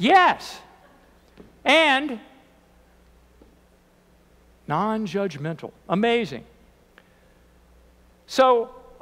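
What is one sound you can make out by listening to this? An elderly man speaks slowly and with pauses into a microphone in an echoing room.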